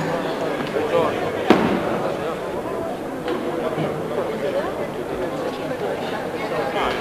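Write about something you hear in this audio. A crowd of men talks in a murmur in a large echoing hall.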